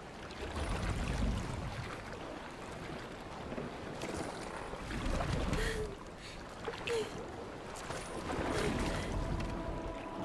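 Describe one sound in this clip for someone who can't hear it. An oar splashes and dips in water.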